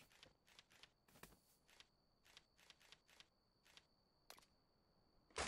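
Soft clicks tick as menu items are selected.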